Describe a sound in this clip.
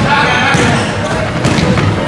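A basketball bounces on a hardwood court as a player dribbles.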